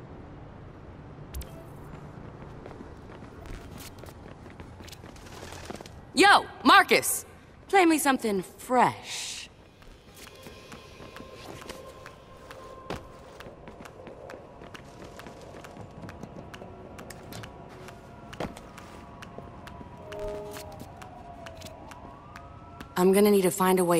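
Quick footsteps run across a hard rooftop.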